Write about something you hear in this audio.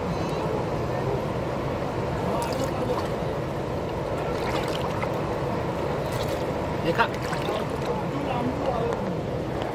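A man slurps water through a drinking straw.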